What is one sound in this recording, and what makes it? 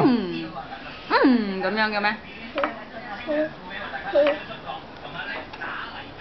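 A toddler girl talks and babbles close by.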